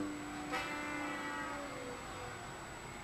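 A descending game tune plays through a television speaker.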